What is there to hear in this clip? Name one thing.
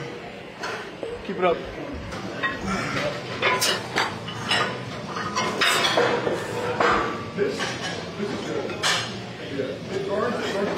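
Young men talk and laugh with animation close by.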